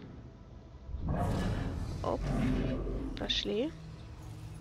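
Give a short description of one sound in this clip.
A ghostly whoosh rushes past.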